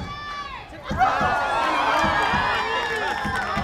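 A group of young women cheers loudly.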